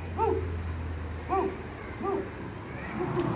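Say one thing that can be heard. Dogs yelp and whine excitedly.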